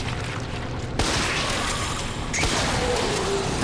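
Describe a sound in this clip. A handgun fires.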